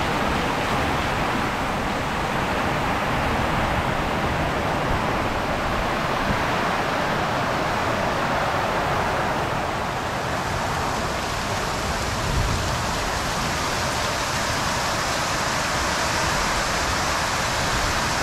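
Strong wind roars and gusts through trees.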